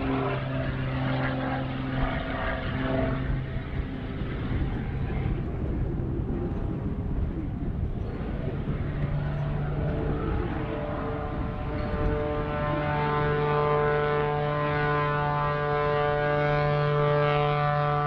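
A propeller plane's engine drones overhead, rising and falling in pitch as it climbs and rolls.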